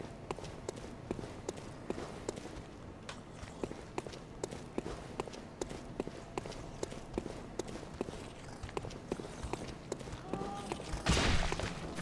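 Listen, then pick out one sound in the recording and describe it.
Footsteps tap steadily on stone.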